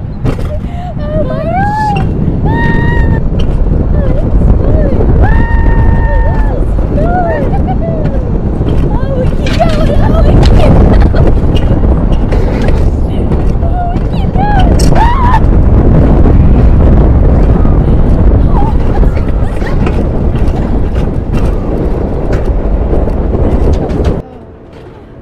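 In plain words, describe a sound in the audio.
A coaster sled rumbles and rattles along a metal track.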